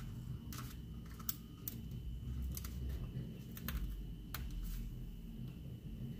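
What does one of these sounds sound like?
Paper stickers peel off a backing sheet with a soft rustle.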